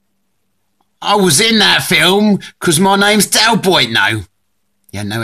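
An older man speaks firmly and steadily.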